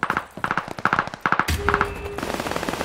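Rapid gunshots fire in short bursts.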